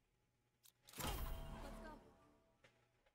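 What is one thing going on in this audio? A swooshing game sound effect plays with a ringing chime.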